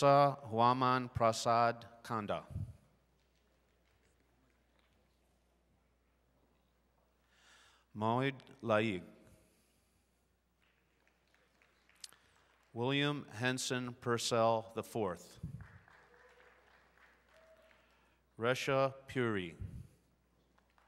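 A man reads out names one by one over a loudspeaker in a large hall.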